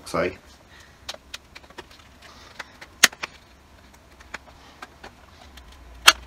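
Cardboard packaging rustles and clicks as a man opens a box.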